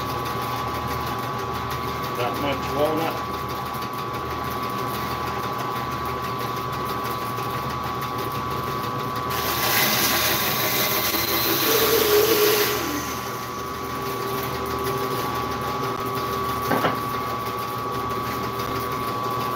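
A band saw motor hums steadily.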